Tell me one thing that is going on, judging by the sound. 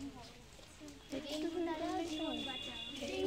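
A young girl chants loudly while walking outdoors.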